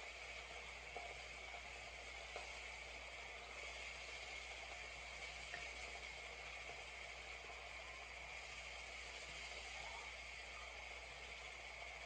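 Vegetable pieces drop into a glass bowl.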